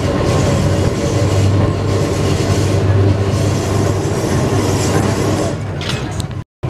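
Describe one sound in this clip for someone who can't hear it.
A tram's motor hums.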